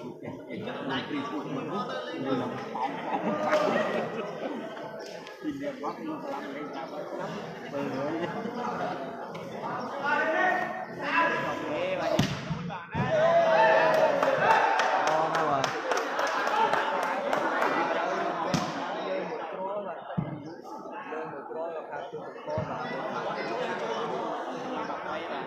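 A crowd of spectators chatters and shouts, echoing in a large hall.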